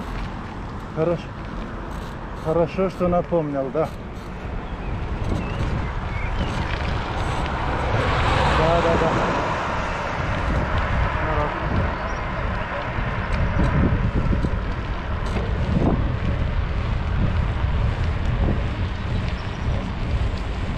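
Wind buffets and rumbles steadily.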